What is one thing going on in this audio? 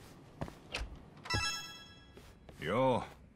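A door opens with a creak.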